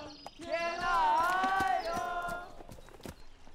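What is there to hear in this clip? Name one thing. A young woman calls out loudly in a high voice.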